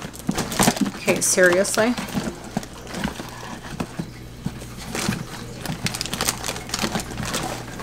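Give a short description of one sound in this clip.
Toys rattle and rustle in a fabric basket.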